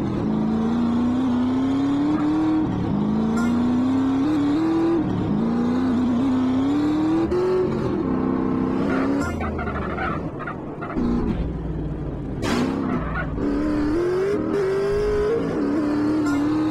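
A motorbike engine revs up repeatedly, its pitch climbing through the gears.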